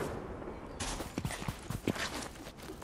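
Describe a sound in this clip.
Footsteps run quickly across dry ground.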